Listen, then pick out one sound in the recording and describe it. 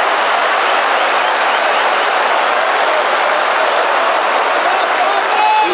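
A large stadium crowd roars and chants loudly.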